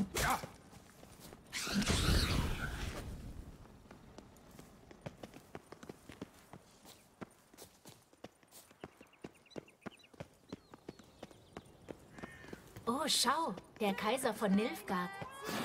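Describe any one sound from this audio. Footsteps run quickly over a dirt path.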